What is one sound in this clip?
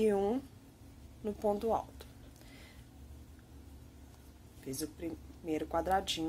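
A crochet hook softly scrapes and pulls through yarn.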